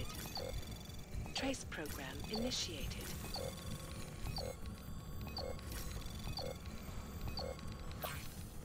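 A countdown timer beeps once every second.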